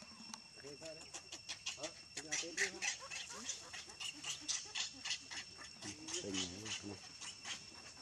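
A baby monkey squeals and whimpers close by.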